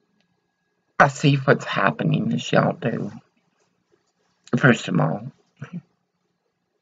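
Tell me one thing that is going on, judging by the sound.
An elderly woman speaks with animation close to a microphone.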